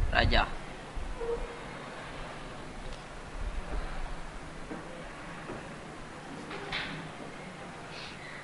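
A pen scratches across paper.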